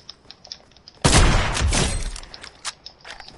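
A sniper rifle fires a loud, booming shot.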